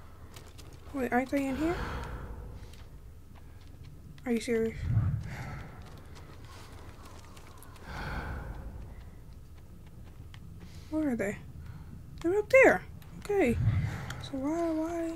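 A young woman talks into a microphone in short bursts.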